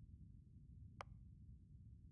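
A short menu click sounds.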